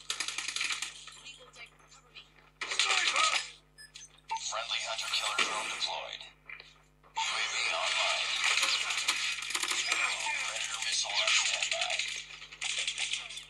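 Rapid gunfire rattles from a game on a phone.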